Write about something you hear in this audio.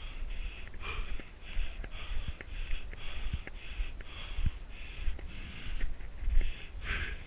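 A mountain bike rattles and clicks over bumps.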